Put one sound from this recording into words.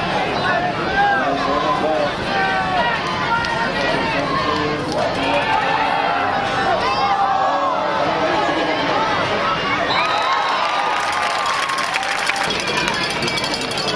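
A crowd of teenage boys shouts and cheers outdoors.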